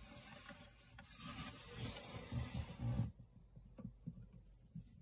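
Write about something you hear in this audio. Small plastic toy figures knock and tap against a hard surface.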